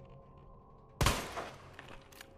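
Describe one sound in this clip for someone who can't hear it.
A pistol fires a single loud shot that echoes.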